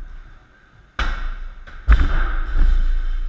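A medicine ball drops and bounces on a floor.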